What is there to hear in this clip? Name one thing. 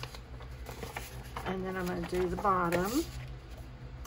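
A sheet of paper rustles as it is handled.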